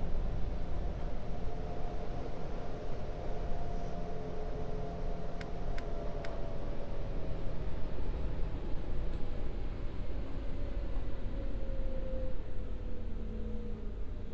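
A subway train rumbles steadily along the track through a tunnel.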